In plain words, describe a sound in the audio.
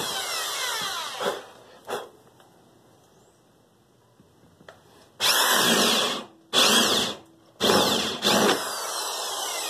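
An electric drill whirs in short bursts, boring into wood.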